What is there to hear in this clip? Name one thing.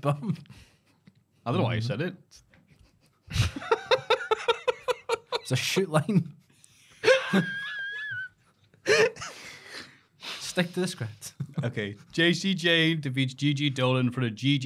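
Young men talk and joke, heard close through microphones.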